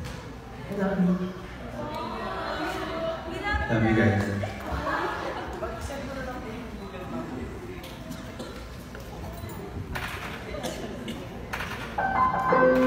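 A young man sings through a microphone and loudspeakers in a large echoing hall.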